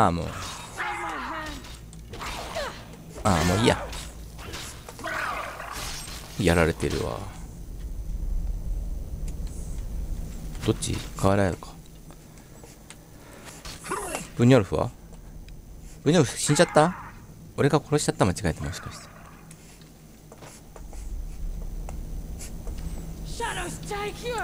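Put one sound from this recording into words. A man shouts in a deep, growling voice during the fight.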